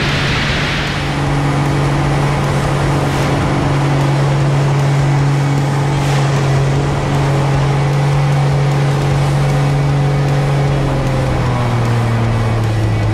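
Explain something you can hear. A propeller plane's engine drones loudly and steadily, shifting slightly in pitch during manoeuvres.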